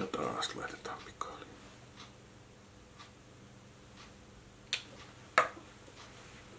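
Small plastic clicks and taps sound from a tube being handled.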